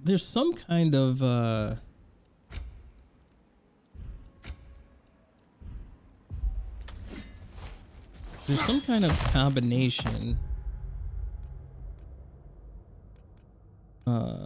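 A man speaks with animation, close to a microphone.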